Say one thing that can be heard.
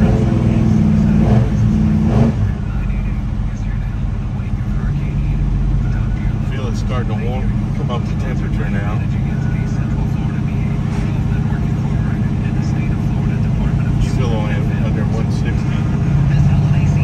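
A car engine hums steadily while driving along a road.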